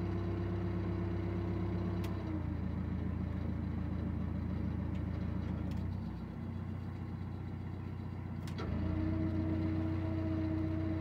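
A boat's diesel engine chugs steadily close by, changing pitch now and then.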